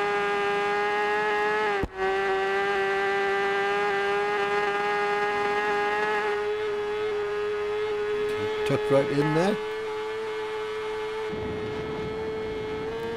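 A motorcycle engine roars at high, steady revs.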